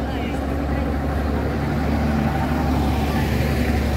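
A street cleaning truck's engine rumbles close by.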